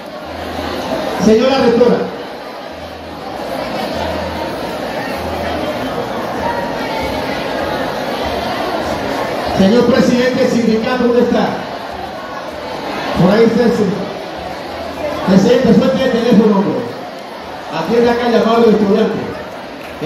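A middle-aged man speaks with animation through a microphone over loudspeakers.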